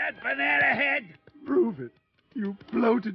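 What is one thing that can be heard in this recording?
A gruff man answers with a taunt.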